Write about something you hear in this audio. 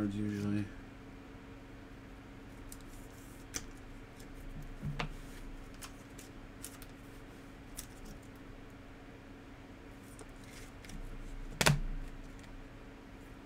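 Plastic card sleeves crinkle and rustle in someone's hands.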